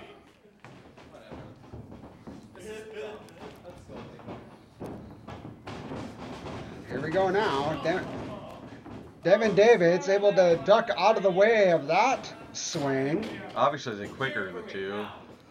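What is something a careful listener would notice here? Feet thump and stomp on a wrestling ring's canvas.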